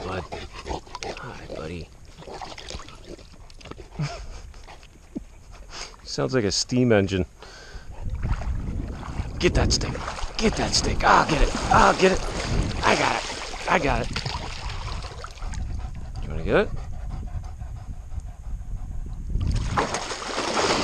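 Water laps and sloshes around a person wading.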